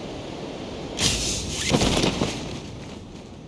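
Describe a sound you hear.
A parachute snaps open with a loud flapping burst.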